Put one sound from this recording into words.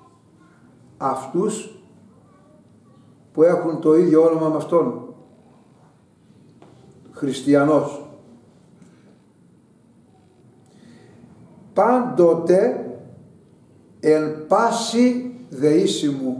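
An elderly man speaks slowly and expressively, close by, with pauses between phrases.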